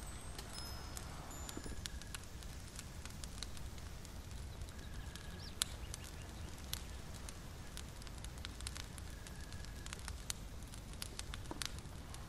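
A small fire crackles softly.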